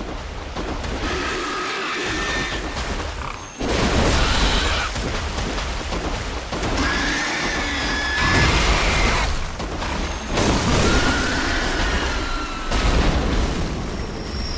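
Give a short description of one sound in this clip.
A large beast roars and snarls loudly.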